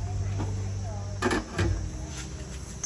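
A metal pot lid clanks onto a pot.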